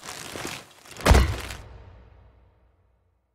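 A heavy thud lands with a booming rumble that slowly fades.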